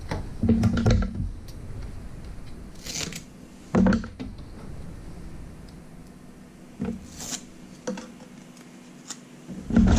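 Small plastic parts click and tap as hands fiddle with them.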